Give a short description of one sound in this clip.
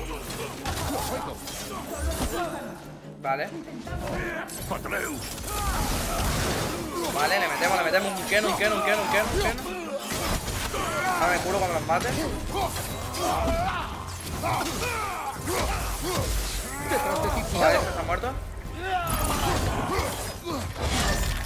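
Axe blows and shield strikes thud and clang in a fight.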